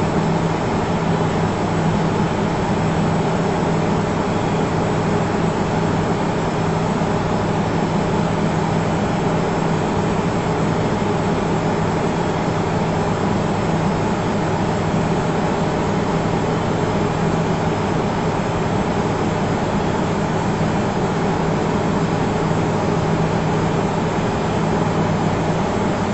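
Jet engines drone with a steady, low hum.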